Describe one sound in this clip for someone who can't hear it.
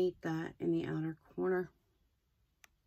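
A woman speaks calmly and close up, as if into a microphone.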